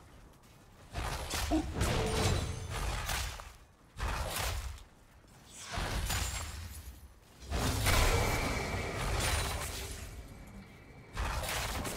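Game spell effects whoosh and crackle in bursts during a fight.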